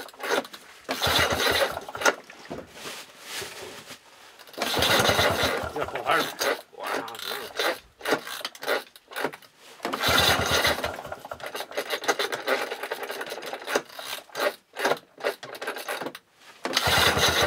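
A small engine cranks and sputters in repeated short bursts.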